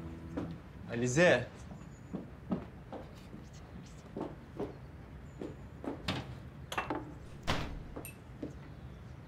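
Footsteps tap on a hard floor indoors.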